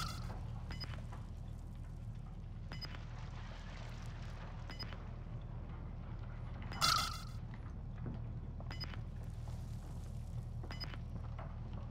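A game's countdown timer beeps softly every two seconds.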